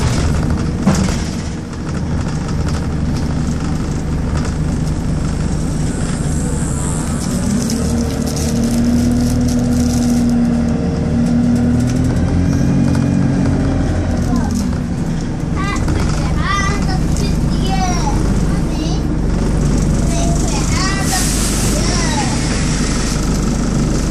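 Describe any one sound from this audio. A bus engine rumbles and hums from inside the bus, rising and falling in pitch as it drives.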